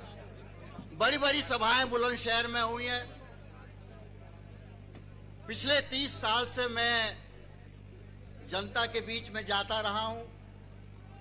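A man speaks loudly into a microphone over loudspeakers, in short, forceful phrases with pauses between them.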